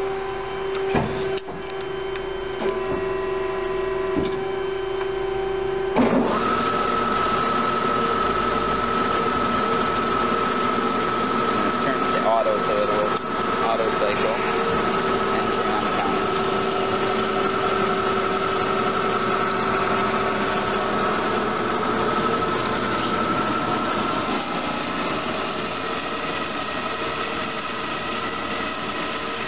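A band saw machine hums and whines steadily.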